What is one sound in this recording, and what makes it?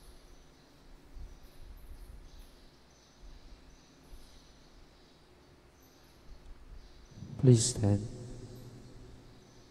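Footsteps sound faintly in a large echoing hall.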